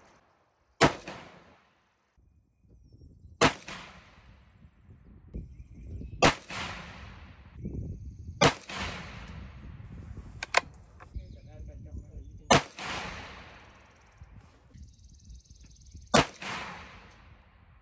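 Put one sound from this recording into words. A rifle fires loud shots one at a time, each echoing briefly outdoors.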